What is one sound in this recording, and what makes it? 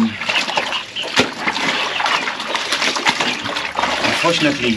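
Water splashes and sloshes as clothes are scrubbed in a basin.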